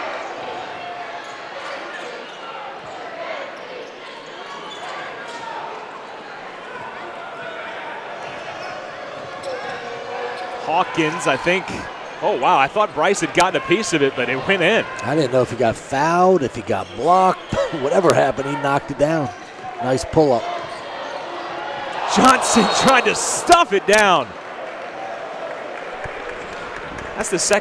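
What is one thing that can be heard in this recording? A crowd murmurs steadily in a large echoing arena.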